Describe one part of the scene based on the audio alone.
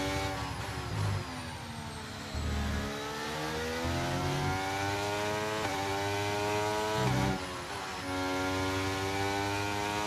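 A racing car engine whines at high revs, rising and dropping as it shifts gears.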